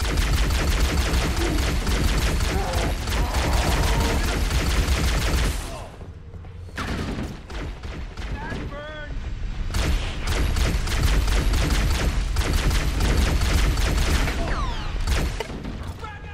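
Rapid gunfire from a game rattles loudly.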